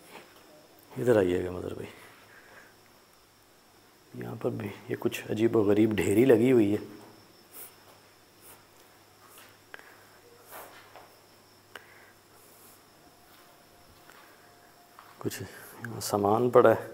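A man talks close by in a low, tense voice, in short bursts.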